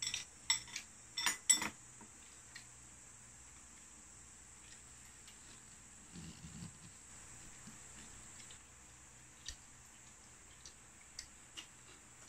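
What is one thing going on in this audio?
Chopsticks and spoons clink against bowls and a metal pot.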